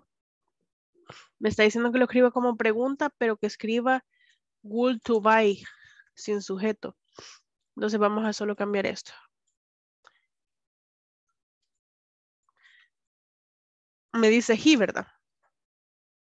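A woman speaks calmly and clearly into a microphone, in short bursts with pauses.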